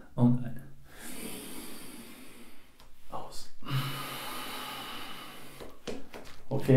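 A man breathes out forcefully through the mouth.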